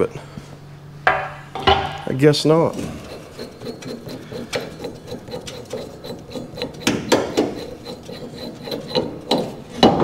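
Metal clanks and knocks against a truck cab.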